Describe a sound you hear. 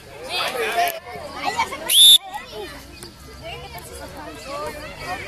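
Children shout and cheer excitedly outdoors.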